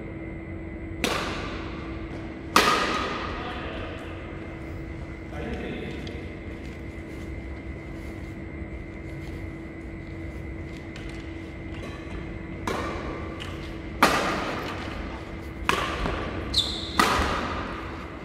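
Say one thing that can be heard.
Rackets smack a shuttlecock back and forth, echoing in a large hall.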